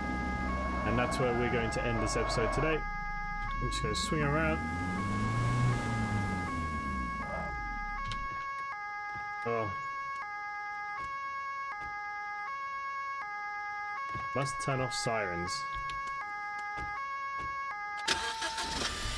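A police siren plays a repeating two-tone wail.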